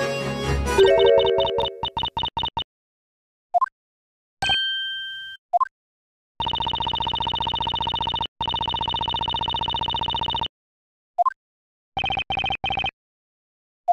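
Rapid electronic blips tick in quick bursts.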